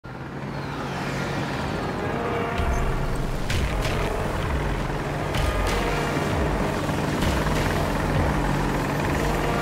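Helicopter rotor blades thump steadily, loud and close.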